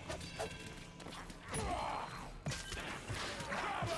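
A blade swings and strikes flesh.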